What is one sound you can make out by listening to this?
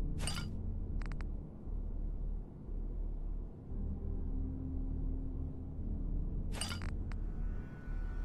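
Short game menu clicks sound now and then.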